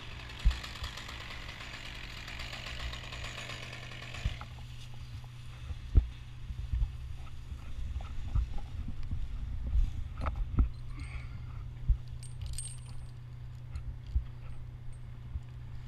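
Metal climbing gear clinks and knocks against the bark.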